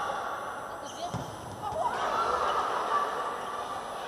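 A volleyball is struck hard during a rally.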